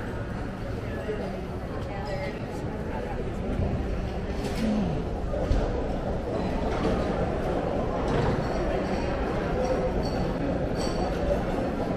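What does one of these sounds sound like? Many people murmur and chatter in a large echoing hall.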